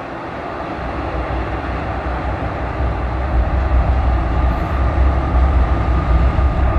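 A diesel locomotive rumbles as it approaches, growing louder.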